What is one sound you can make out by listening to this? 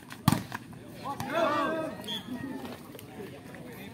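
Young men shout and cheer outdoors.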